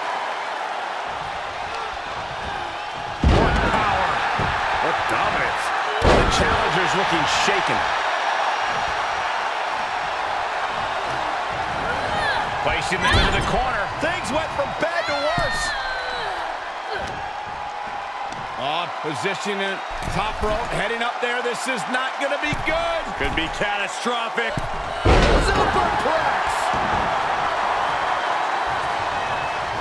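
A large crowd cheers steadily in a big arena.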